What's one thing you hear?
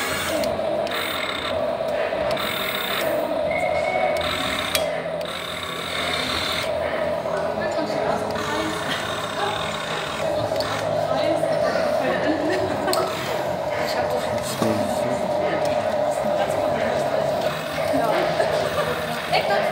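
A small toy excavator's electric motor whirs steadily with a high hum.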